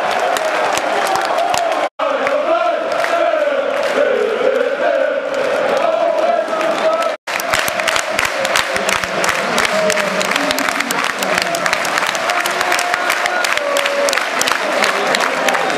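A large crowd sings loudly together in an open stadium.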